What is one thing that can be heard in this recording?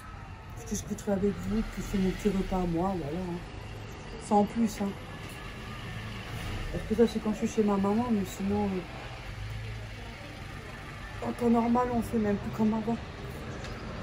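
A middle-aged woman talks calmly close by, in short bursts with pauses.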